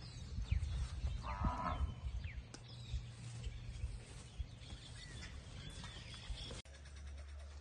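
Cattle hooves shuffle and crunch on dry straw and dirt.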